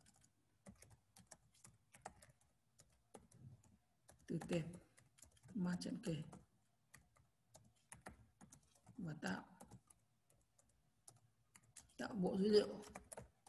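Keys on a keyboard click as someone types.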